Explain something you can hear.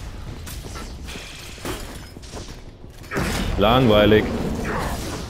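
A charged energy blast bursts with a humming roar.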